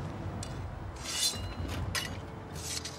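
Metal gear clicks and rattles.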